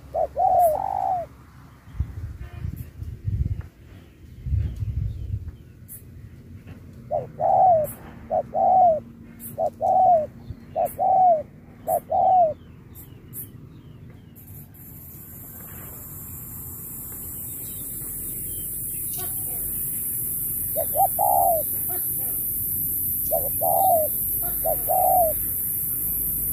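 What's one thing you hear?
Doves coo nearby in short, repeated calls.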